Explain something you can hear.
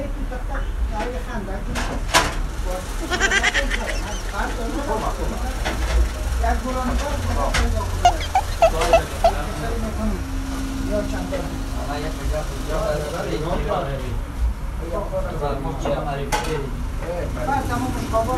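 Several men talk over one another in a small room.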